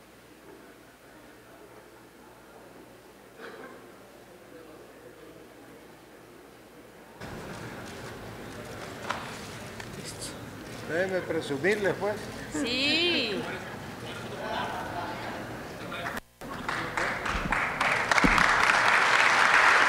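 A large crowd murmurs and chatters in an echoing hall.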